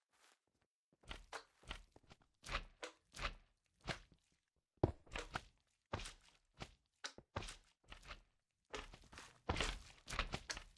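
A pickaxe chips at stone with repeated crunching knocks.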